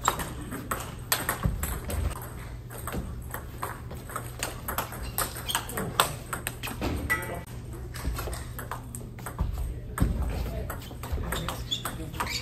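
A table tennis ball clicks rapidly back and forth off paddles and the table.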